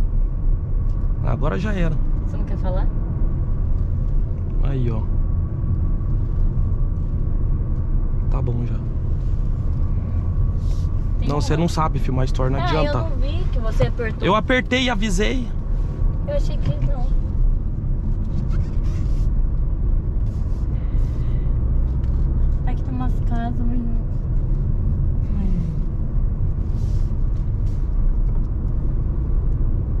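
A car engine hums steadily with tyres rumbling on the road.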